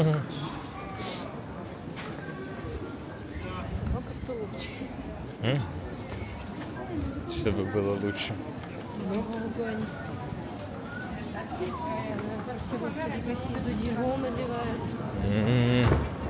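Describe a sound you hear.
Footsteps tap on a wet pavement.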